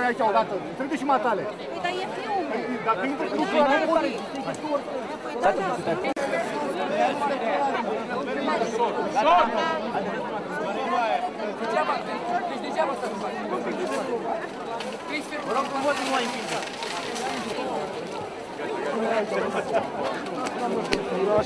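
A crowd of men and women shouts and talks over one another close by.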